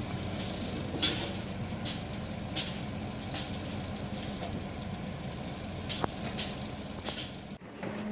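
Metal clanks sharply now and then on a building site.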